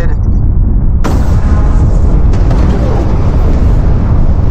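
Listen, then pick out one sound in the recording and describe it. A loud explosion bursts and roars.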